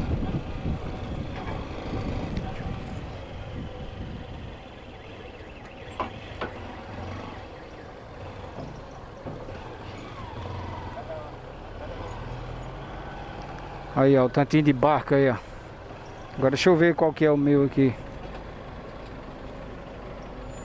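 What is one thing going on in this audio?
A motorcycle engine rumbles at low speed close by.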